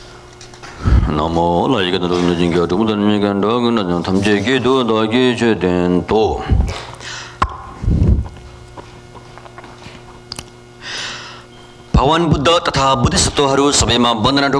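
A man chants in a low, steady voice through a microphone, in a reverberant hall.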